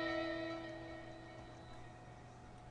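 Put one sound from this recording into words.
A phone game plays a ringing electronic chime that slowly fades.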